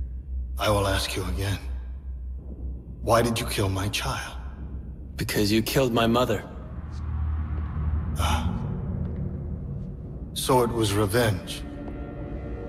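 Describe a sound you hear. A deep-voiced older man speaks slowly and menacingly.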